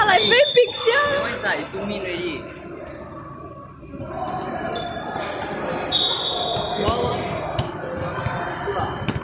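Children and young people shout and chatter in a large echoing hall.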